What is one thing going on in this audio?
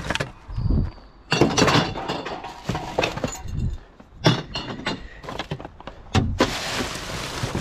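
Empty cans and bottles clink and rattle.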